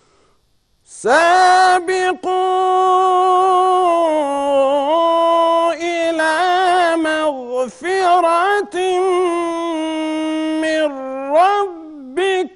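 A man chants loudly in a long, drawn-out melodic call, close to a microphone.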